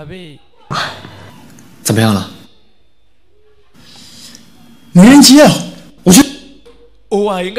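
A young man speaks into a phone with surprise and urgency.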